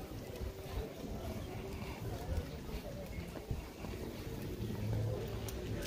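Voices of a crowd murmur in the distance.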